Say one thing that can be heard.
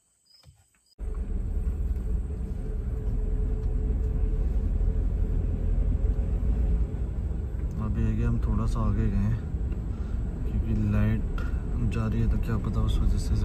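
A car engine rumbles steadily as the car drives along a road.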